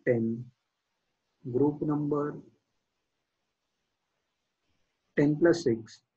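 A young man speaks calmly and explains through a close microphone, with pauses.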